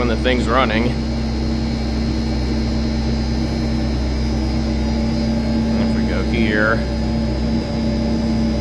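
A boiler hums steadily with a low, constant drone.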